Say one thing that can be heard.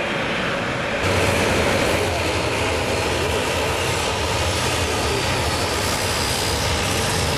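A propeller plane's engines hum and drone as it taxis.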